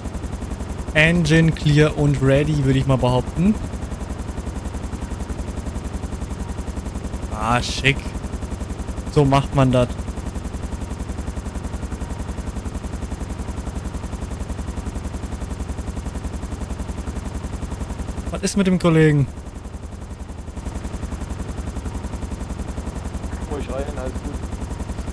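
A man talks briefly over a radio, in short bursts.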